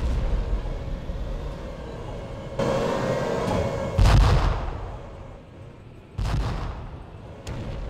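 A tank engine rumbles steadily as the tracks roll.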